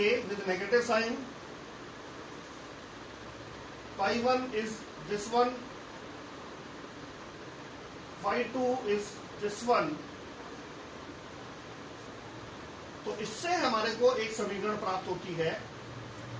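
A man explains calmly in short phrases, with long pauses between them.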